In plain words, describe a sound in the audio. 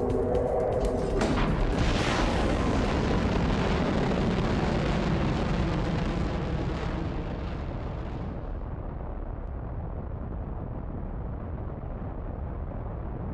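A rocket engine roars steadily with a deep rumble.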